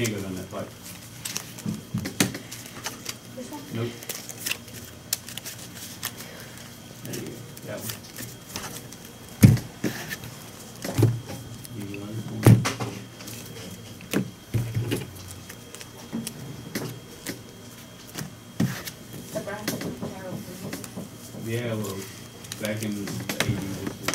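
Playing cards shuffle and riffle in hands.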